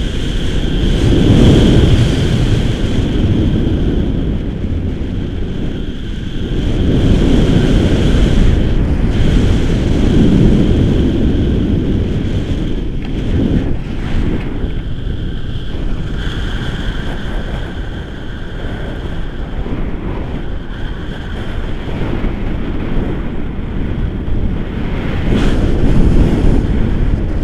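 Wind rushes loudly past the microphone outdoors.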